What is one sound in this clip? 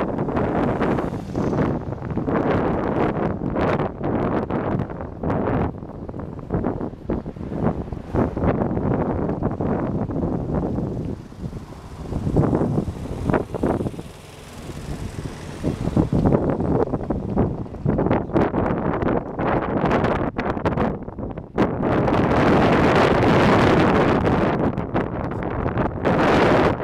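Wind buffets and rumbles loudly outdoors.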